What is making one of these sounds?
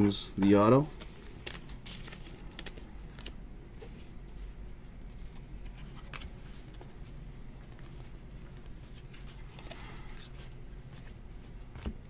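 Hands flip through a stack of glossy trading cards, the cards rustling and sliding against each other.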